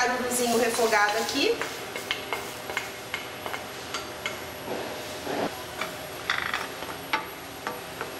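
Metal pans clink and scrape together.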